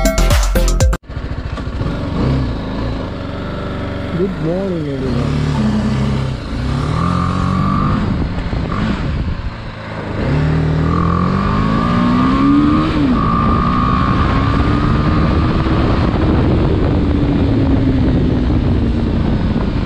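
A motorcycle engine rumbles steadily while riding.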